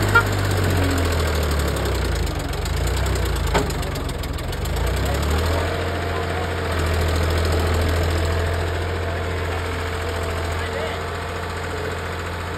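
A trailer rattles and clanks over bumpy ground.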